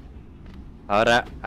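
A young man speaks briefly and loudly close to a microphone.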